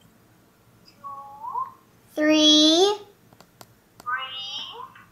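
A young girl sings high, playful notes close by.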